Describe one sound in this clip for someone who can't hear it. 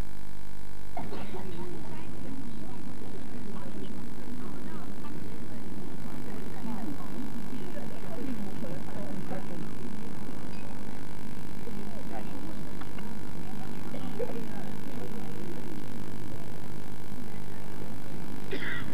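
A crowd chatters and murmurs outdoors in the distance.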